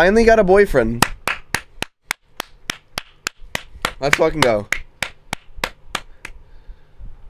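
A young man claps his hands quickly.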